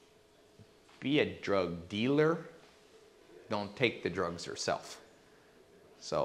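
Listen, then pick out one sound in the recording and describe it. A man speaks calmly into a small microphone, with pauses.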